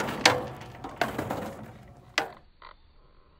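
Footsteps thump on metal playground steps.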